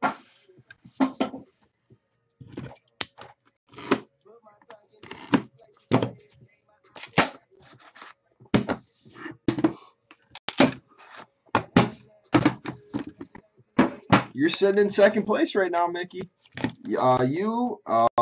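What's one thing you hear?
Wooden boxes knock and clack as they are set down on a table.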